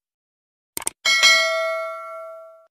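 A small bell rings out and slowly fades.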